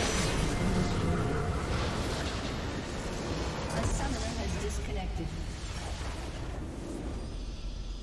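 A game structure explodes with a loud rumbling blast.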